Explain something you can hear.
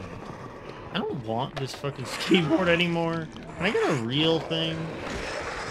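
Zombies groan and moan up close.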